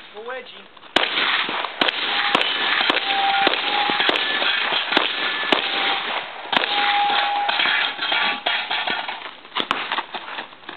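A pistol fires shots in quick succession outdoors, with the bangs echoing across open ground.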